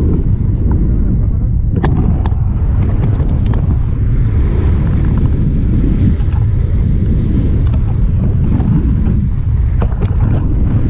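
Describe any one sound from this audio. Wind rushes and buffets a microphone in flight under a paraglider.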